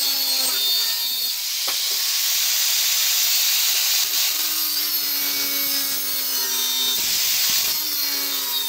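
An angle grinder whines loudly as it cuts through metal.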